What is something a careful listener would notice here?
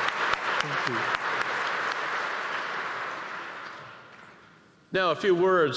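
A large audience applauds in a big hall, then the applause fades away.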